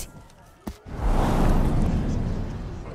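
Smoke bursts out and hisses loudly.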